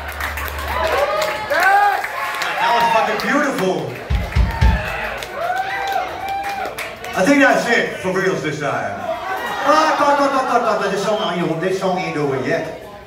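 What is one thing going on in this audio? A man sings loudly into a microphone over a live band.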